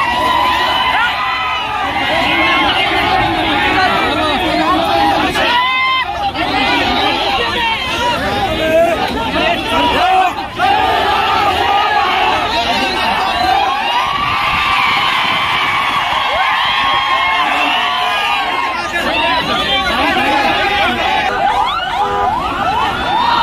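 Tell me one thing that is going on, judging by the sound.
A large crowd of men shouts and cheers loudly close by.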